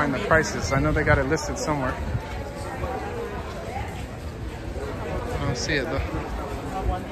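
A crowd of people murmurs in the background.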